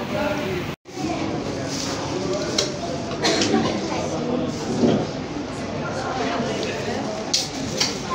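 A toddler babbles softly close by.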